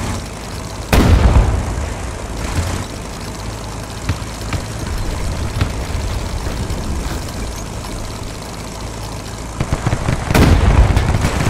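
A tank cannon fires with a loud, booming blast.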